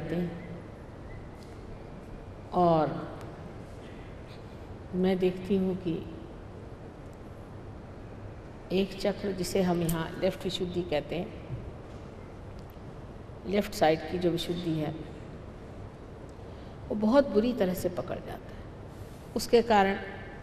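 An elderly woman speaks calmly into a microphone, pausing between phrases.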